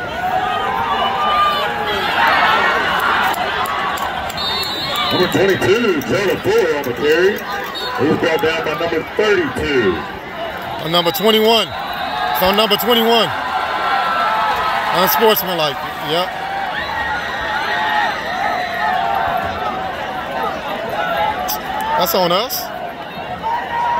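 A large crowd cheers and shouts loudly across an open stadium.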